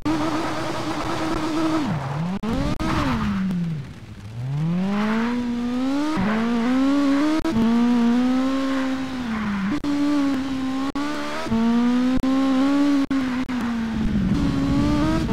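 A racing car engine revs up and down as the gears shift.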